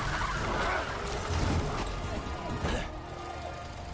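A car skids and slides across a wet road.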